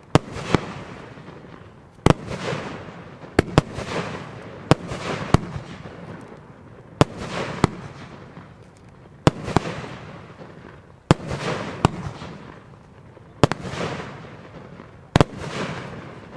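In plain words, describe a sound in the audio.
Fireworks burst overhead with sharp booming bangs.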